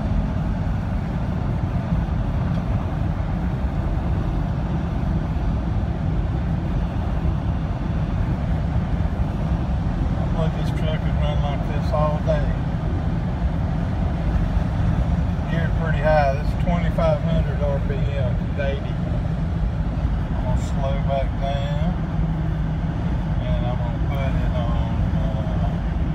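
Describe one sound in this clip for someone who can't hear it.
Road and wind noise roar steadily inside a moving car.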